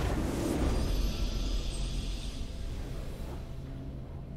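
A bright burst of fanfare rings out and fades.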